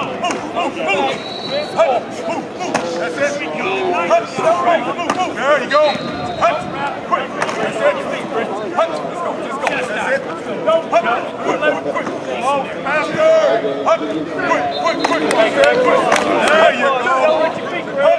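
Football players' pads thud and clack as they collide.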